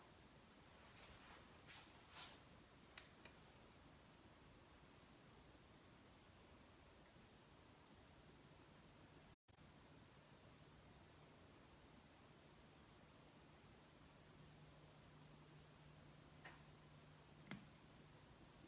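Small clicks and knocks come from a record player being handled.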